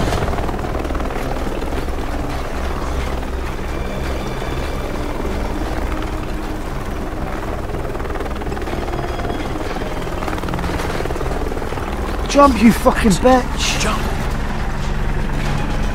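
A helicopter's rotor thrums overhead.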